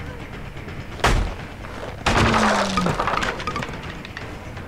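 A wooden wall smashes apart with a loud crash.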